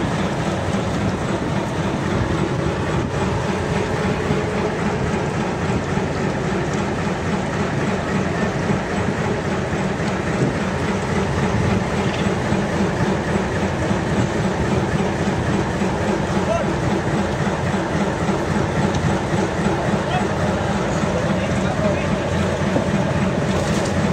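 Sea water sloshes against a boat's hull.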